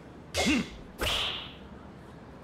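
A golf club strikes a ball with a sharp thwack.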